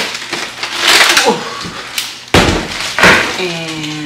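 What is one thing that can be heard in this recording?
A plastic bag of ice rustles and crinkles.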